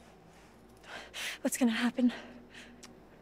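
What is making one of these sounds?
A young woman asks a question softly and anxiously.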